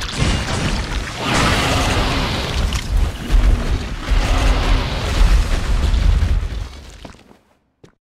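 A monster growls deeply.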